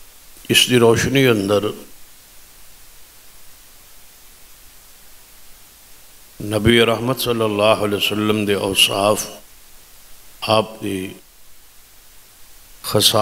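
A middle-aged man speaks forcefully into a microphone in bursts, with pauses between phrases.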